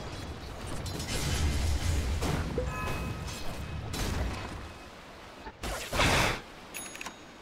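Fantasy game battle effects crash and whoosh as spells hit.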